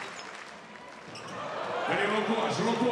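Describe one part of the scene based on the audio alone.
A large crowd cheers, swelling louder.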